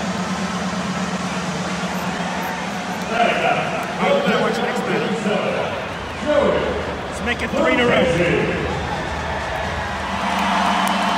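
A large stadium crowd murmurs steadily in an open, echoing space.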